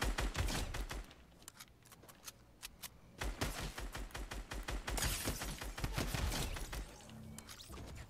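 Rapid gunshots crack from a video game.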